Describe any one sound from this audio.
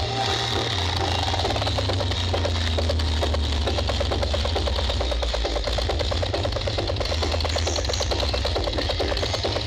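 Loud music with a heavy, steady bass booms from loudspeakers outdoors.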